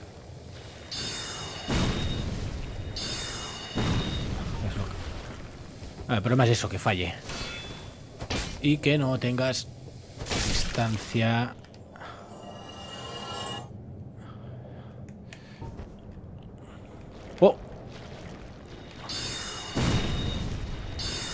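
A magic spell whooshes out with a bright shimmering chime.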